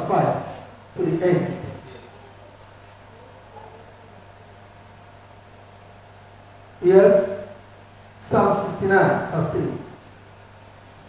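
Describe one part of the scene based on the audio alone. A man speaks in short bursts through a microphone, in a room with some echo.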